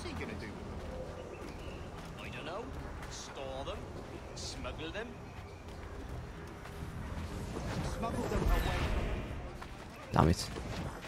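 A young man talks calmly, close to a microphone.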